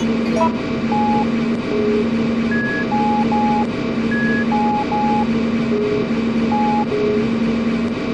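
Short electronic beeps play a simple tune.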